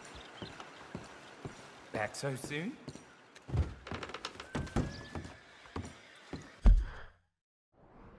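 Boots thud on a wooden floor.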